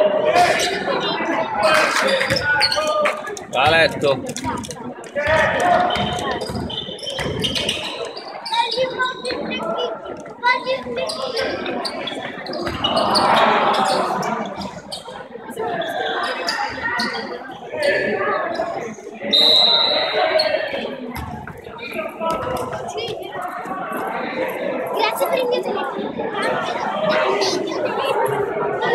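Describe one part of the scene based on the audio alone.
Spectators chatter and call out in a large echoing hall.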